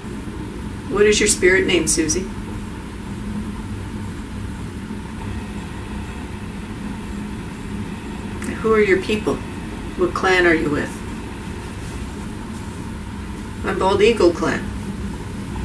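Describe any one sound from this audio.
A woman speaks in short bursts close by.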